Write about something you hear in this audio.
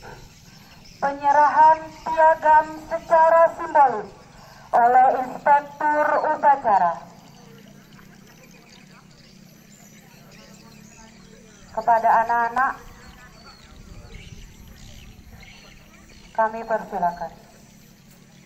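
A man speaks loudly through a microphone and loudspeakers outdoors, in a formal, commanding manner.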